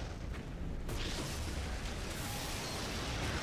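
A large fire roars.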